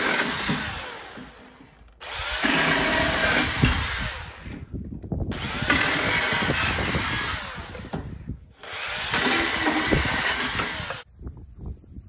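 A power tool whines loudly in short bursts.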